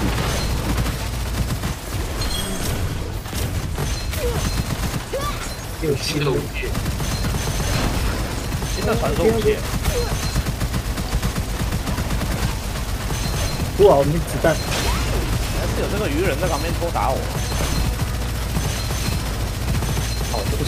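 A game weapon fires rapid energy blasts.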